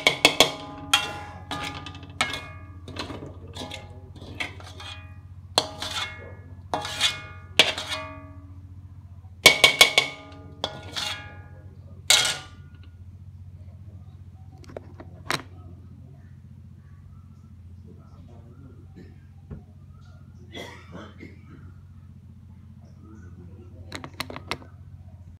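A metal spatula scrapes and clangs against a metal pan, ringing sharply.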